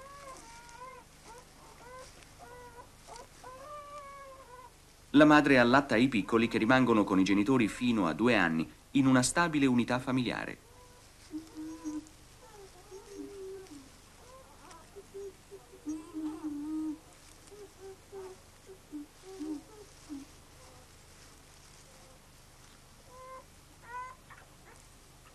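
Young animals squeak and chirp softly close by.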